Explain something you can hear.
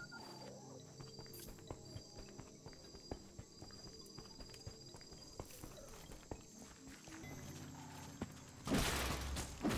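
Footsteps tap on stone as a game character walks.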